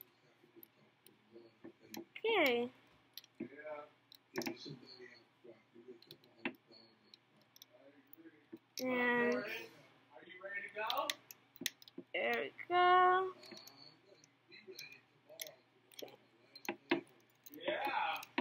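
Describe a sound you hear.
Small plastic knobs turn with a faint gritty scrape.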